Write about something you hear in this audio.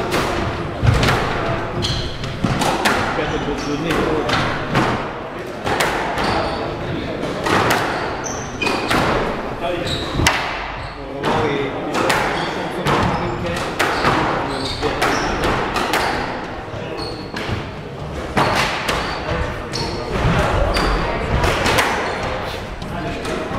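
A squash ball smacks hard against the walls of an echoing court.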